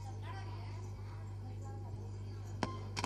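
A middle-aged woman speaks into a microphone, heard through a loudspeaker in a hall.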